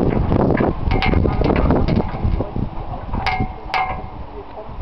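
A metal chain clinks against a metal pole.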